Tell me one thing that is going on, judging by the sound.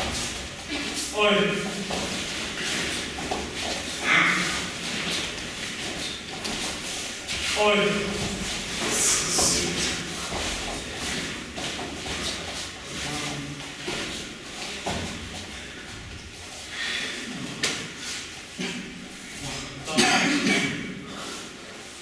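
A young man calls out instructions loudly in an echoing room.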